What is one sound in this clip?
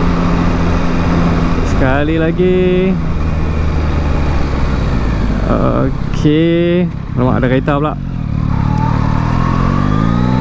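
A motorcycle engine hums steadily and revs up near the end.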